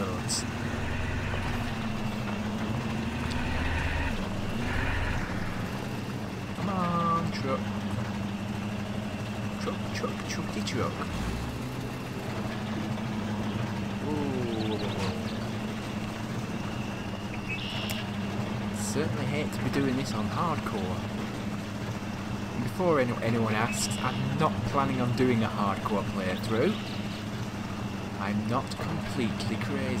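A truck engine hums steadily at low revs.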